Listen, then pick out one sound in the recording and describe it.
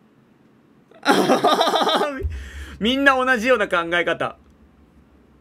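A young man laughs close to a microphone.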